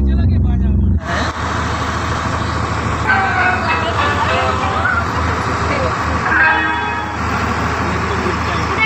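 Loud music blares from loudspeakers outdoors.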